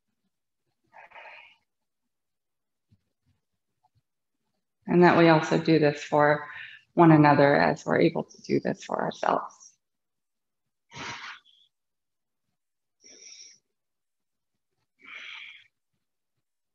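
A woman breathes in and out slowly.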